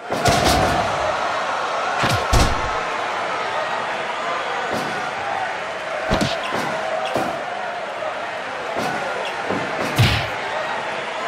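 Heavy bodies thud onto a wrestling mat, several times.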